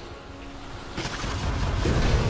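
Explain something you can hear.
Sharp magical strikes crackle.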